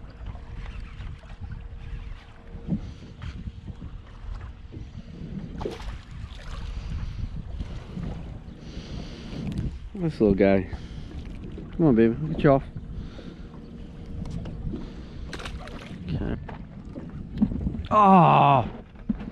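Wind rumbles outdoors over open water.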